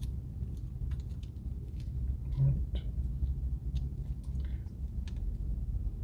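A ketchup packet crinkles and tears.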